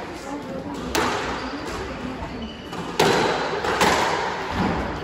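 A squash ball is struck by a racket and smacks off the walls of an echoing court.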